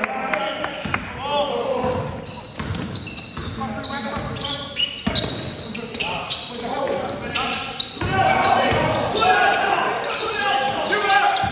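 Young men call out and shout to each other across the court.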